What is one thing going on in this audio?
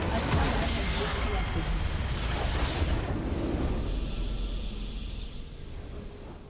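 A tower crumbles with a loud rumbling crash.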